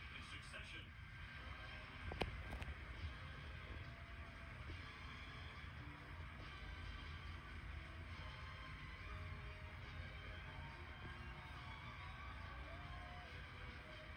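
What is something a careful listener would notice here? A crowd applauds and cheers, heard through a television loudspeaker in a room.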